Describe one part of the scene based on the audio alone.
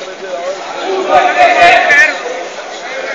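Men shout loudly nearby.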